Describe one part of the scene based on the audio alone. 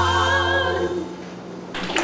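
A woman sings a held, wavering note with vibrato.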